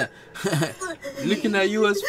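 A young man laughs softly close by.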